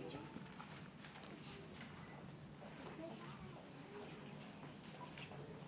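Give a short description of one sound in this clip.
An audience murmurs and chatters quietly in a large echoing hall.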